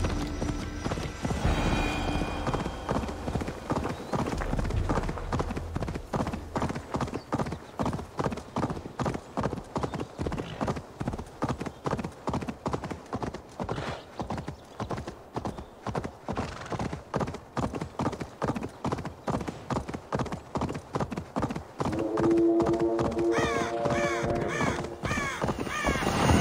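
Horse hooves clop steadily at a gallop on a stony road.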